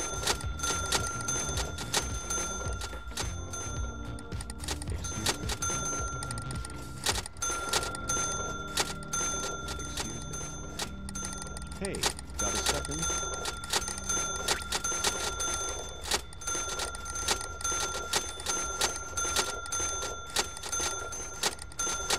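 A checkout scanner beeps repeatedly.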